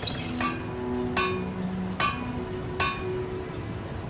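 Heavy armoured footsteps clank on stone.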